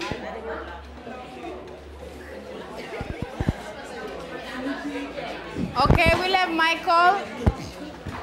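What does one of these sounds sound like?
A woman speaks calmly and clearly into a microphone nearby.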